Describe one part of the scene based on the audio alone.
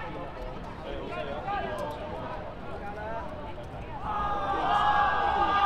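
Young men shout and call out to each other across an open outdoor pitch.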